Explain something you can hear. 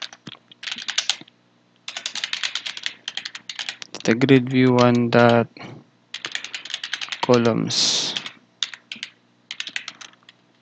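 Keys clack quickly on a computer keyboard.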